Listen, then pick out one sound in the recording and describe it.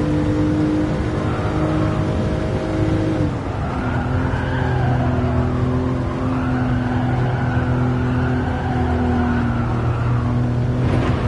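Tyres squeal through a bend.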